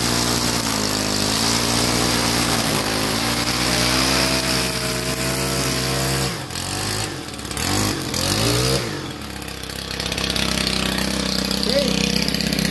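A petrol string trimmer engine whines loudly and revs up and down.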